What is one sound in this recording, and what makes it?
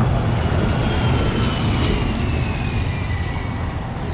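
A city bus rumbles past with its engine humming.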